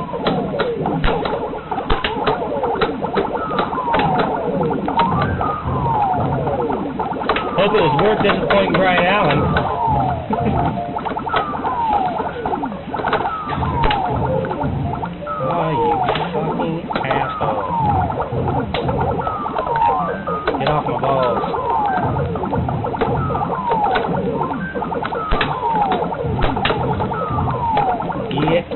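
An arcade video game plays beeping electronic sound effects and music.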